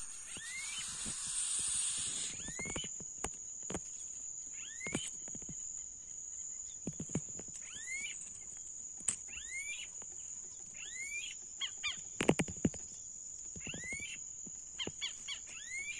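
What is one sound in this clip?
Nestling birds cheep in short, high, rising chirps, close by.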